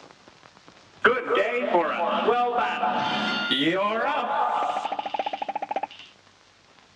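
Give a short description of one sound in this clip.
Rapid cartoon shots pop and zap.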